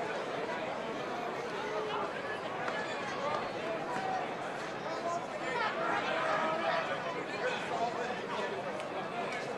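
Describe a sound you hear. Young men shout and call out to one another nearby, outdoors.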